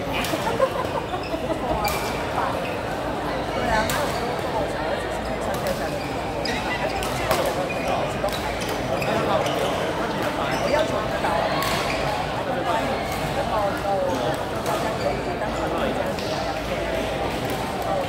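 Badminton rackets smack a shuttlecock again and again.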